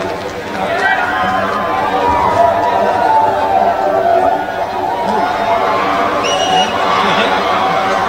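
Live music plays loudly through big outdoor speakers.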